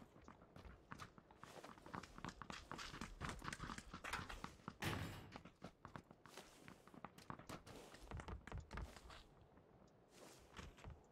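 Footsteps crunch steadily on the ground.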